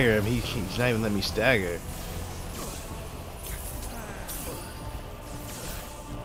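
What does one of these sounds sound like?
Energy beams sizzle and whoosh.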